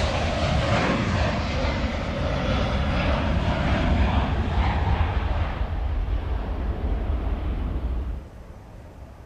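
A jet engine roars loudly nearby.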